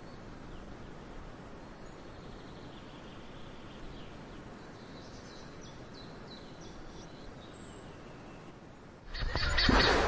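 Water rumbles and bubbles, muffled underwater.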